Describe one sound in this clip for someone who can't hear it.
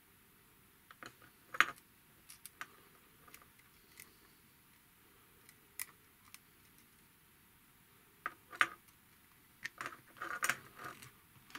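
Plastic tube fittings click and tap softly as they are pushed together.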